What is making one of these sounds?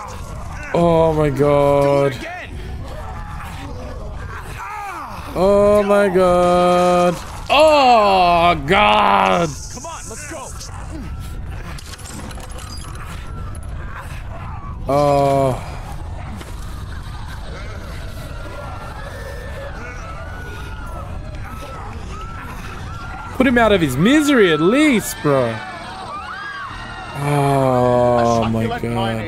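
A man shouts loudly and excitedly into a microphone, in short bursts.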